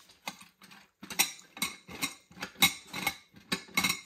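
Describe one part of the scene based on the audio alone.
A glass gumball globe clicks and taps as hands handle it.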